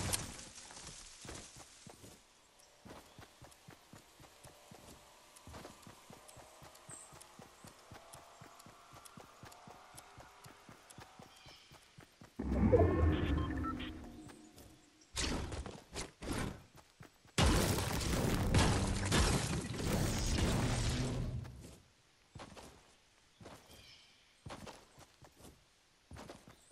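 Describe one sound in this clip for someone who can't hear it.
Footsteps patter steadily over grass and dirt.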